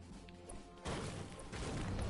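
A pickaxe strikes debris with dull knocks.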